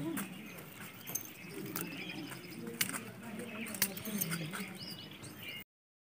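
A hand rustles dry leaves on the ground.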